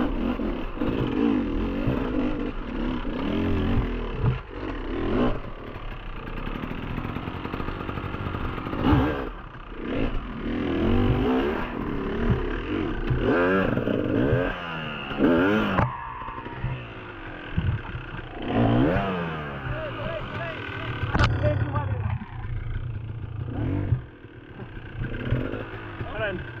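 A dirt bike engine revs and idles up close.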